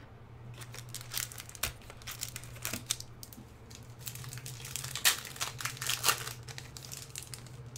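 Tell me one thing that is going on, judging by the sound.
Playing cards rustle and tap as they are handled and set down.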